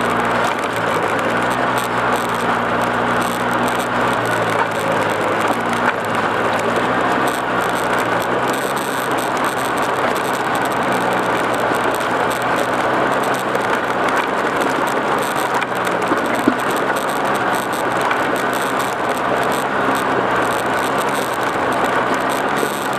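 An engine hums steadily as a vehicle rolls along.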